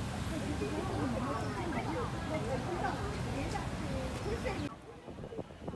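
Voices of passers-by murmur in a busy street outdoors.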